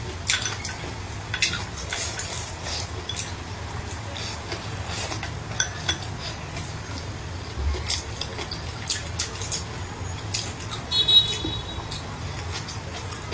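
Chopsticks clink against a ceramic bowl.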